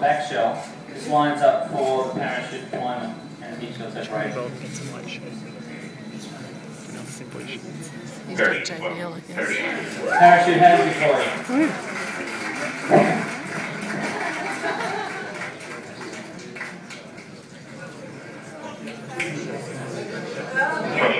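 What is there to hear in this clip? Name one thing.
A man speaks calmly through a loudspeaker.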